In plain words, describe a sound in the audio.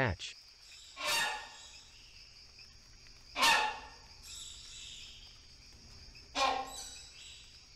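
A large bird gives a few loud, harsh honking calls.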